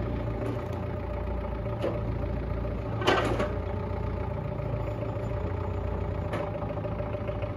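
A forklift engine idles steadily.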